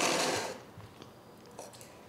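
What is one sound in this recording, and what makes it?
A fork clinks on a plate.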